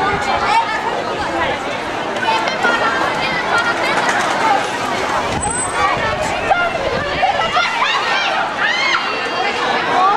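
A crowd of people chatter outdoors.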